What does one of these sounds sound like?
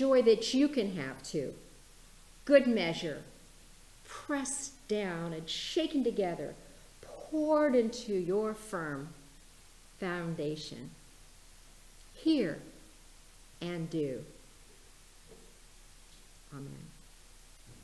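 A middle-aged woman reads aloud expressively into a microphone.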